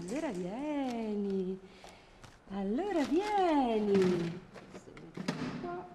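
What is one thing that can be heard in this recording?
A woman says a few words warmly, close by.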